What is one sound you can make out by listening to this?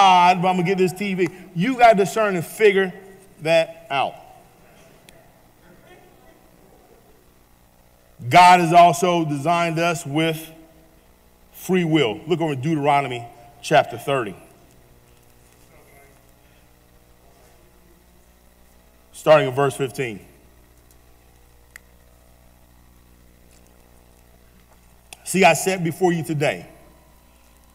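A man speaks slowly and earnestly into a microphone, with long pauses.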